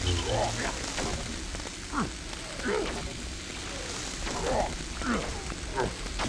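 A lightsaber hums and sizzles as it cuts through metal.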